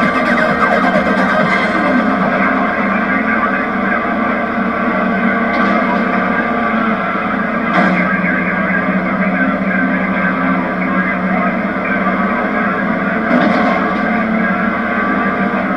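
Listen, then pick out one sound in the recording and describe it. A racing car engine roars and revs steadily at high speed.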